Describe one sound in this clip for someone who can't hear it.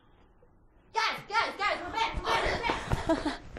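A young woman talks and laughs excitedly close by.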